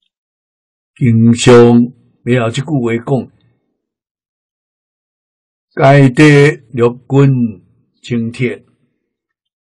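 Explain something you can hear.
An elderly man speaks slowly and calmly, close to a microphone, with long pauses.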